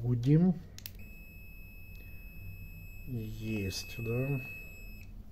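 A multimeter gives a steady, high beep.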